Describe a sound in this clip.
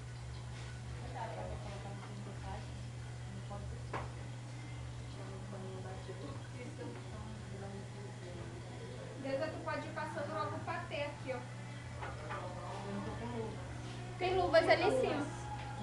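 Women talk and laugh nearby.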